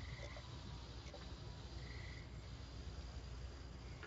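A man gulps a drink from a can.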